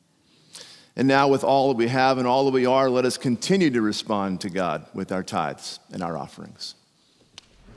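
A man speaks calmly through a microphone in a reverberant hall.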